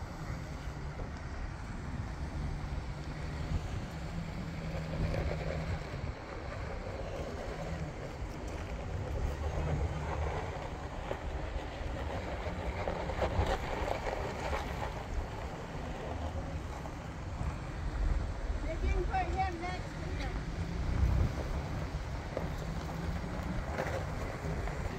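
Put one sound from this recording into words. An SUV engine rumbles low as it crawls over rough ground.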